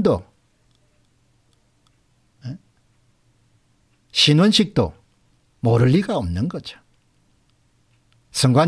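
A middle-aged man speaks calmly and close into a microphone, with pauses.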